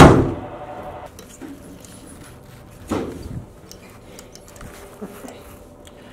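A lift button clicks as it is pressed.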